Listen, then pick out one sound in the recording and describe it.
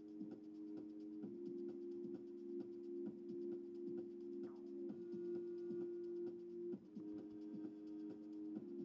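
Game music with a steady beat plays through a small tablet speaker.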